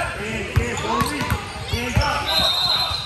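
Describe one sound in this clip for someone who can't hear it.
A basketball bounces with dull thumps on the floor.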